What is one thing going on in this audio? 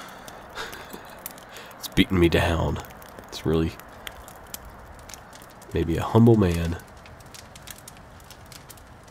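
A small fire crackles and pops softly.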